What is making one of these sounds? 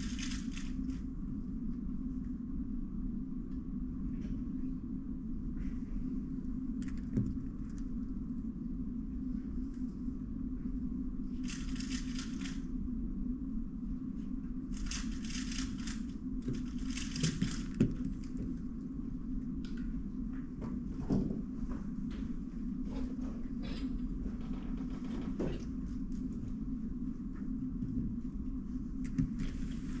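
Plastic puzzle cubes click and rattle as they are turned and handled.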